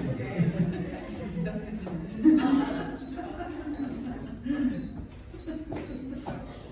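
Several women chatter quietly in the background.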